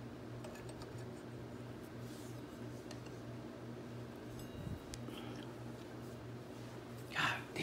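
Metal parts click and clink softly as they are fitted by hand.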